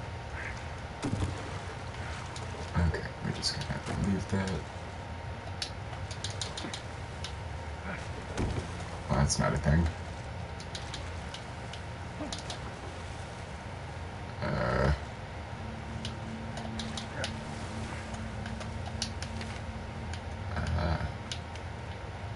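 A young man talks now and then into a close microphone.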